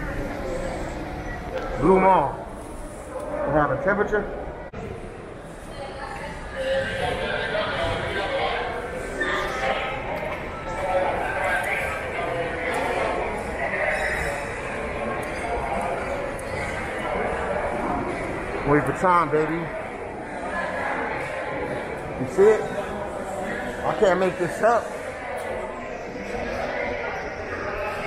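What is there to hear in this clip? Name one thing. Many people murmur and chatter at a distance in a large echoing hall.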